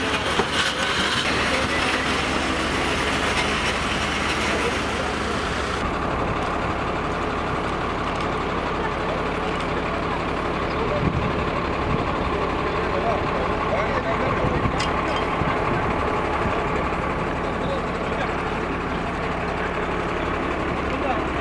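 Several men talk and call out to each other outdoors.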